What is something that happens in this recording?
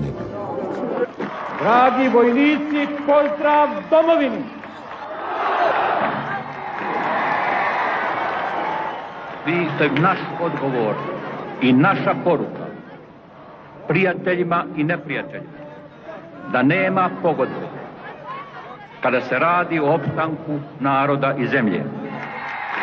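An elderly man speaks forcefully into a microphone, heard through loudspeakers echoing across a stadium.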